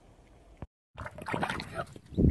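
Water splashes in a tub.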